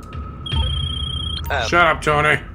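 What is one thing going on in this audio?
A phone rings with a short electronic tone.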